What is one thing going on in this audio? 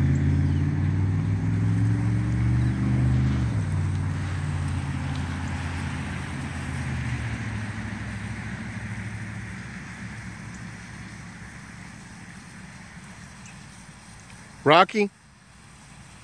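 Water hisses steadily from a sprinkler spraying nearby.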